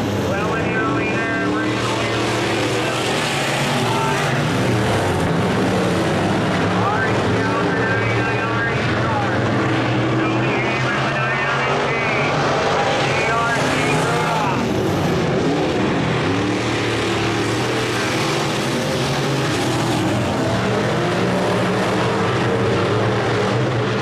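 Race car engines roar loudly as cars circle a dirt track.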